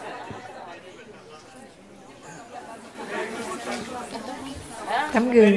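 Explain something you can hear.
A crowd murmurs and laughs softly.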